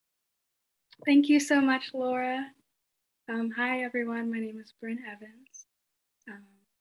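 A teenage girl talks and laughs through an online call.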